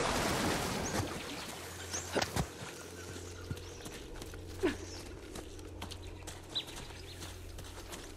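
Footsteps crunch softly on dirt and grass.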